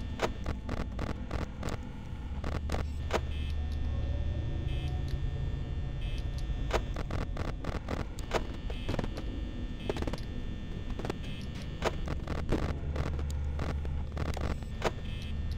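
Electronic static crackles and hisses.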